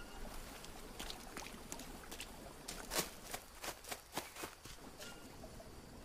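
Footsteps crunch on leaves and twigs.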